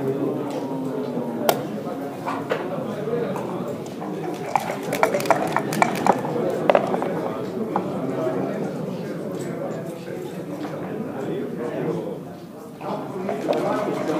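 Game pieces click against a wooden board.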